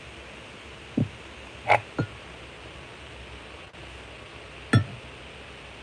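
Metal clanks sharply a few times.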